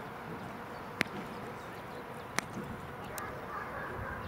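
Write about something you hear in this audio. A stick snaps sharply against padding a few times.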